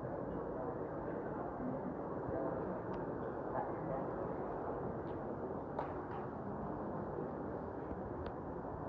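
Several men murmur in low voices at a distance in a large echoing hall.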